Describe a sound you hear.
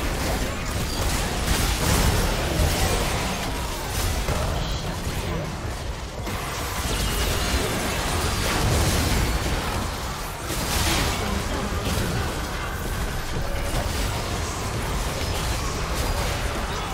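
Spell effects and magic blasts crackle and boom in a fast battle.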